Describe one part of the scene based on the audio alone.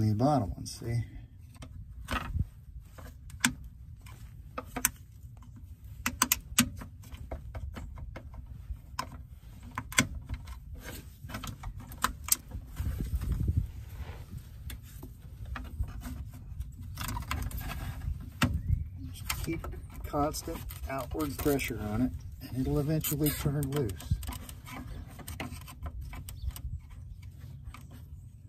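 Plastic parts click and tap as fingers handle a small connector up close.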